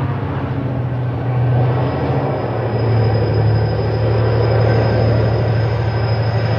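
Train wheels rattle rhythmically on the rails.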